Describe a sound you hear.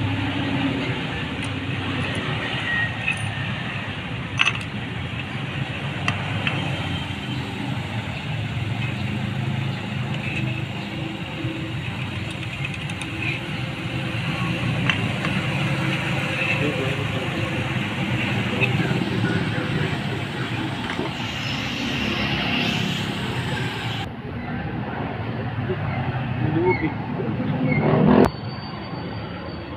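Small metal parts clink and tap as hands work on an engine.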